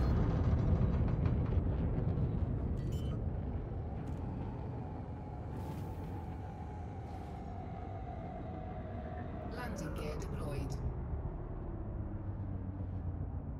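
A spacecraft engine rumbles low and steady.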